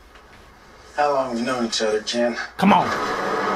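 A man speaks calmly through a loudspeaker.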